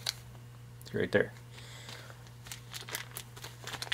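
A plastic sleeve crinkles in a hand.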